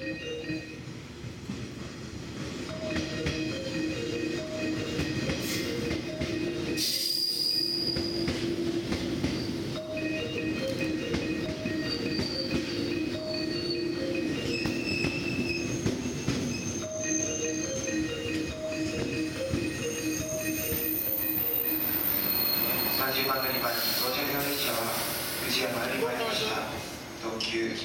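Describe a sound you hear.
A train rumbles and squeals slowly along the rails.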